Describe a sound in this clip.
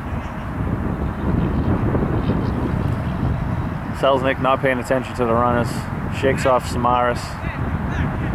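Wind rumbles low outdoors.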